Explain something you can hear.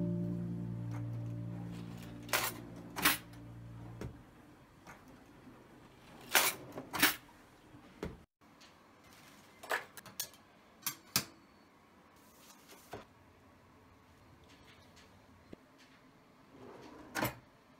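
Metal cutlery rattles inside a drawer.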